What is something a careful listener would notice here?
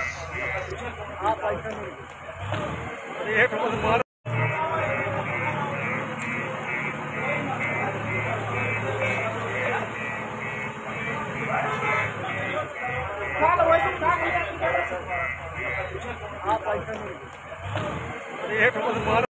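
Several men shout and talk excitedly nearby.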